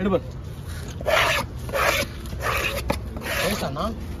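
A knife blade scrapes across a wooden block.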